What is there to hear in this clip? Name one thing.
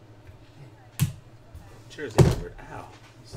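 A card in a plastic case knocks down onto a hard case.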